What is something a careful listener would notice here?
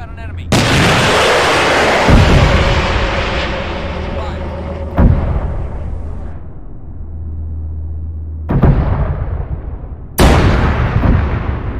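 Loud explosions boom and rumble, one after another.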